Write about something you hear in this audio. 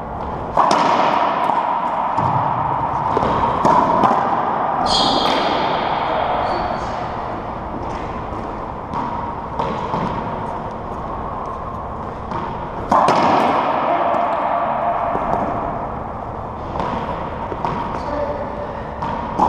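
A racquetball smacks off racquets and walls in an echoing enclosed court.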